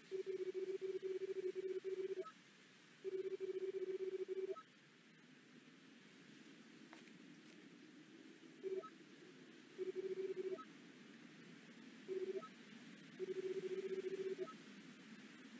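A steady buzzing tone blips as dialogue text types out.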